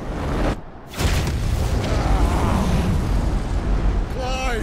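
A loud blast booms.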